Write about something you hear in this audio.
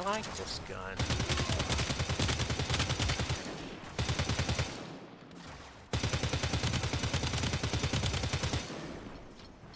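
A rapid-fire gun shoots in fast bursts.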